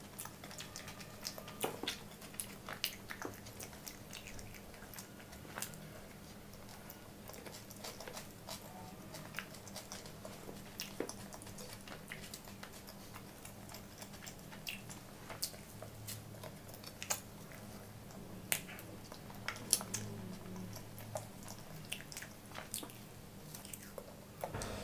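A young woman chews food wetly and loudly, close to a microphone.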